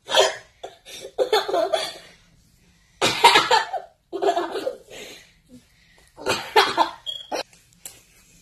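A young child talks excitedly and cries out close by.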